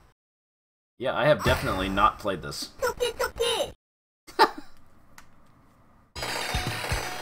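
Arcade game music plays in short bursts.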